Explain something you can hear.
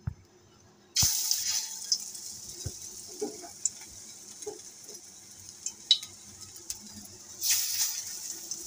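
Hot oil sizzles as dough is dropped into it.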